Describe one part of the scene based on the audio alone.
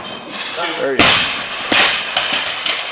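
A heavy barbell crashes onto the floor and bounces with a loud clang.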